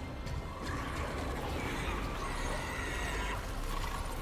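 A creature snarls and screeches.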